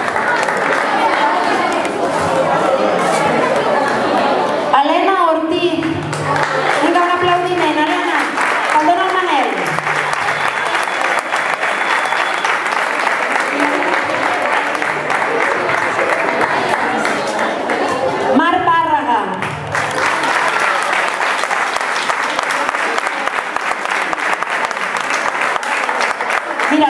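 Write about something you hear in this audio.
Children chatter and cheer.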